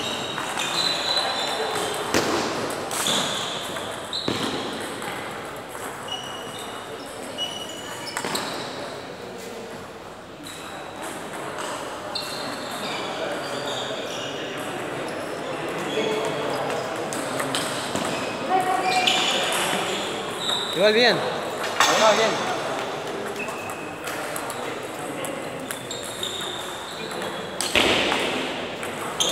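Ping-pong balls click sharply on tables and paddles in a large echoing hall.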